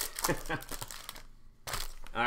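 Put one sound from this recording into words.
A foil wrapper crinkles as it is torn open.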